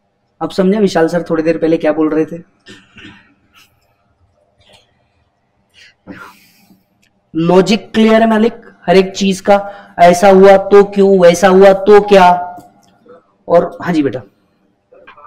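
A man lectures with animation through a microphone, pausing between phrases.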